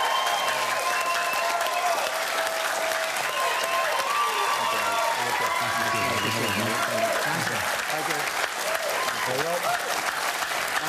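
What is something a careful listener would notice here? A large audience claps and cheers loudly.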